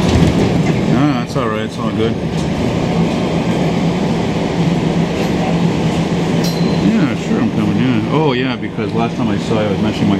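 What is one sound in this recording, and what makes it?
A subway train's motor whines in rising and falling tones as it brakes.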